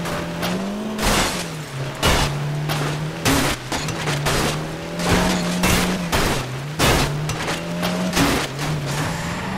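A car smashes through roadside barriers and debris.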